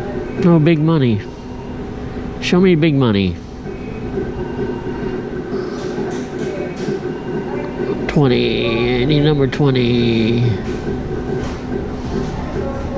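A steady hum of machines runs in the background.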